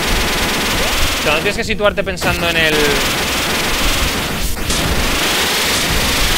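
Chiptune game music plays steadily.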